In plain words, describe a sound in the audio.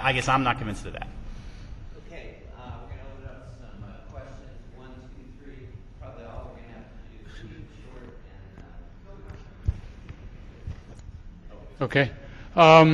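A man speaks more quietly from a distance.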